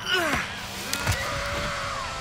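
A body thuds heavily onto a hard floor.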